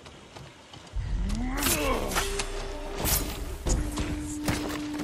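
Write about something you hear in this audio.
A blade strikes into a body with a heavy thud.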